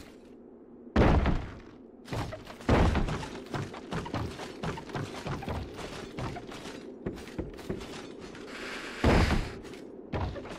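A heavy thud lands on wood.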